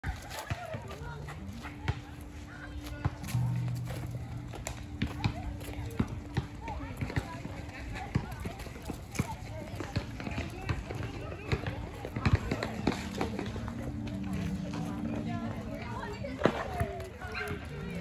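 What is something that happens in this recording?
Children and adults chatter and call out in the distance outdoors.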